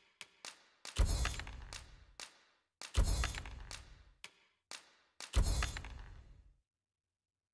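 Coins clink in a bright jingle with a low thud.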